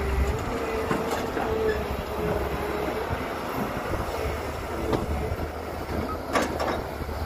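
Metal clanks sharply as an excavator bucket knocks against a truck.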